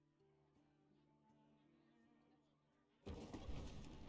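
Soft game music plays with gentle notes.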